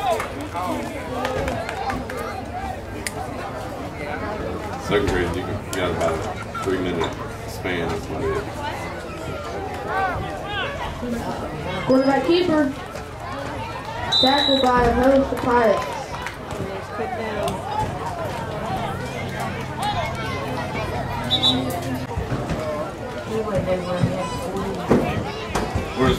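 Adult spectators shout and cheer nearby, outdoors.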